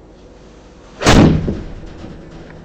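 A golf club strikes a ball with a sharp smack.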